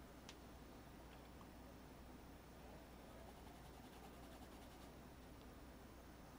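A paintbrush scrapes softly across a canvas.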